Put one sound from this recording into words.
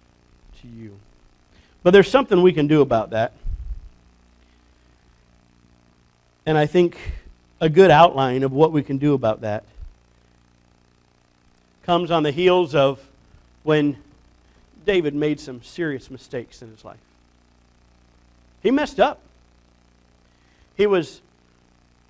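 A middle-aged man preaches through a microphone with animation, pausing between phrases.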